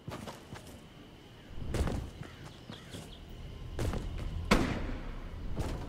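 Footsteps patter quickly across hard ground.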